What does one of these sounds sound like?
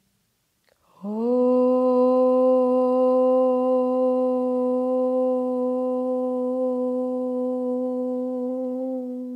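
A young woman hums a long, steady low note.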